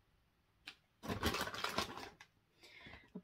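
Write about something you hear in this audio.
A padded paper envelope rustles as it is handled.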